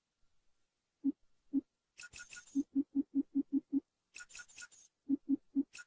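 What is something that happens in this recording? Short soft menu blips sound one after another in quick succession.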